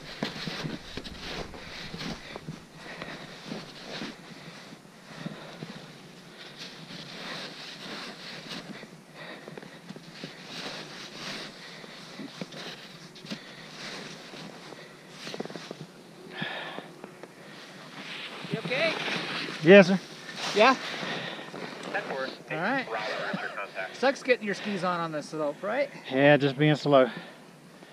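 Skis hiss and scrape through deep powder snow.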